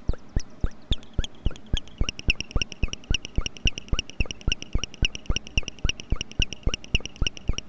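A high electronic tone rings steadily over the pulses.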